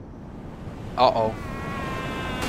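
A young man cries out in surprise.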